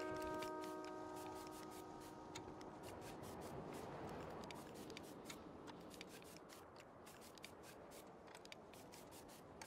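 A revolver's metal parts click and rattle as it is cleaned.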